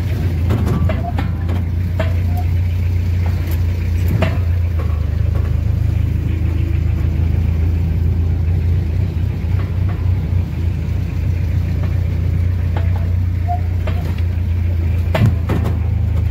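Small knocks and rattles sound now and then inside a car.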